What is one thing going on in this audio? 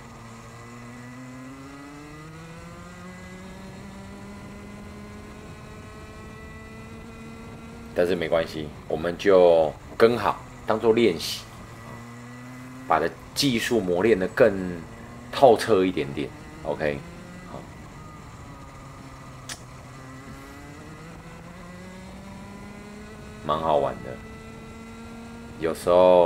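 A kart engine drones steadily, its pitch rising and falling with speed.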